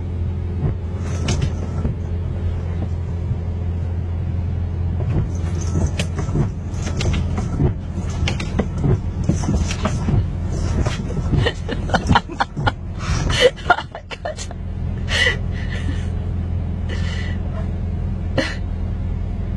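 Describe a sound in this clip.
Windscreen wipers sweep back and forth with rubbery squeaks.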